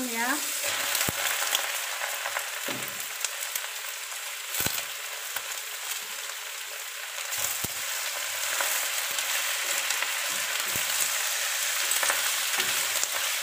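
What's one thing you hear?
A spatula scrapes and clatters against a metal pan.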